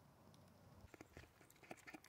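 Calves slurp milk noisily.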